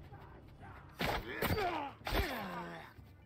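A sword strikes with sharp metallic blows.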